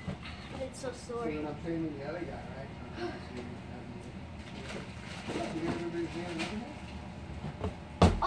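A child's feet thump onto soft cushions.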